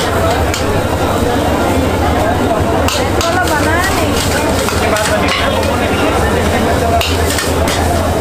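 A cook stirs noodles in a pan.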